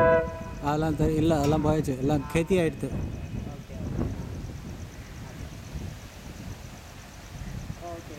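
A train horn blares in a long, wavering blast.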